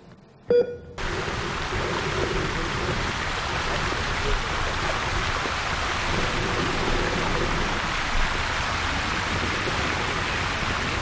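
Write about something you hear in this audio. A fountain splashes steadily outdoors.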